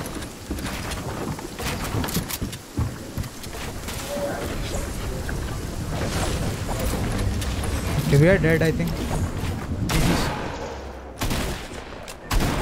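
Wooden walls clatter and thud as they are quickly built.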